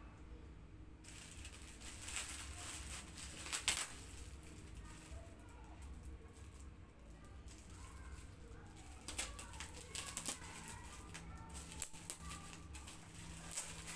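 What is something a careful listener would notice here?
Gift wrapping paper rustles and crinkles.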